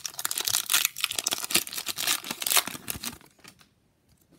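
A foil wrapper crinkles and rustles.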